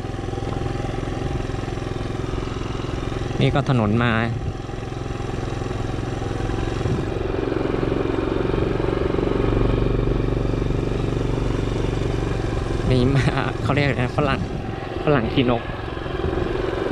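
A motorcycle engine hums steadily while riding along a bumpy dirt track.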